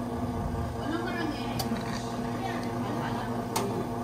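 Espresso pours over ice in a glass.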